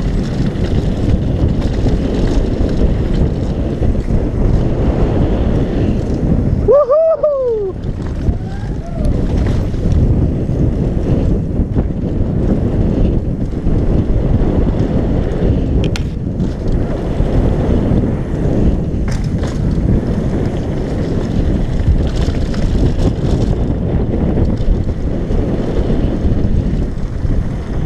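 Bicycle tyres rumble over dirt and gravel.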